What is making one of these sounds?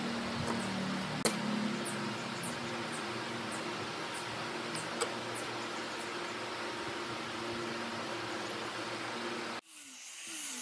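A bar clamp clicks as it is tightened on wood.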